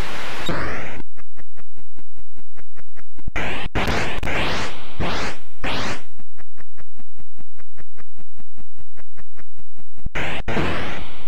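A retro video game drone buzzes steadily.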